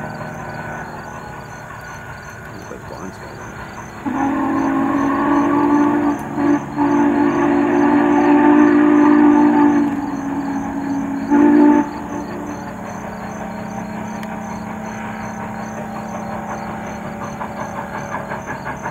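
A steam locomotive chugs rhythmically in the distance.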